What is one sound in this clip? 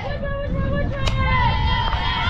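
A bat cracks against a softball.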